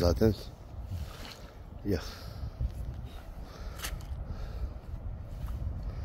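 Water splashes softly as a net is pulled from a river.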